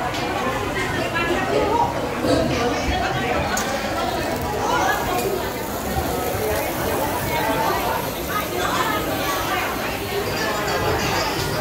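A crowd of people chatters indoors.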